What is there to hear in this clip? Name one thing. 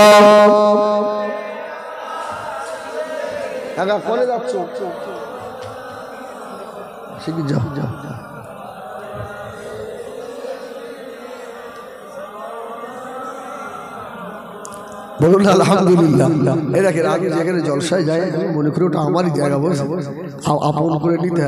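A man speaks through a microphone, calmly at first, then loudly and with animation.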